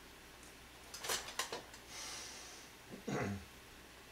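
A metal ladle clinks and scrapes against a pot.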